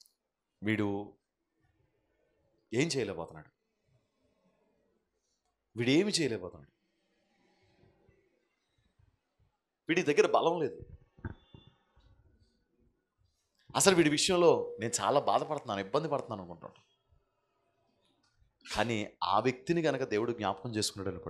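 A middle-aged man speaks with animation into a microphone, in short bursts with pauses, heard through loudspeakers.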